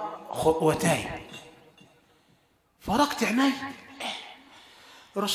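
A middle-aged man preaches forcefully into a microphone, his voice echoing through a loudspeaker.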